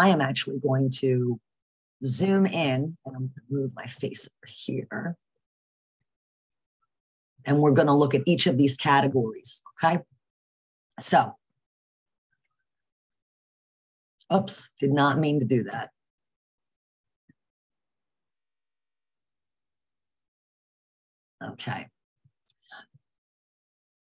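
A woman speaks calmly through a microphone on an online call, with pauses.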